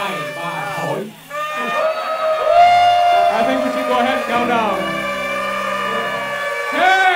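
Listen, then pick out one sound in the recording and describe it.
A man sings loudly through a microphone, holding long notes.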